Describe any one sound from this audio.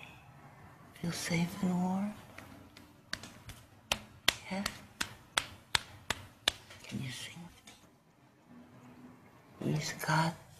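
An elderly woman speaks softly and affectionately close by.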